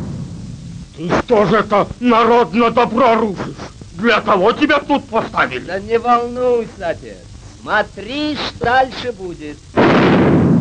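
A man talks with animation, up close.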